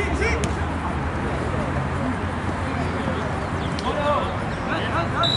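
Several young men shout and call out across an open field.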